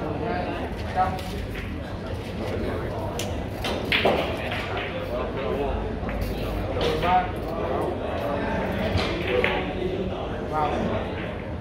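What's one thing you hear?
Billiard balls knock together and roll on the table.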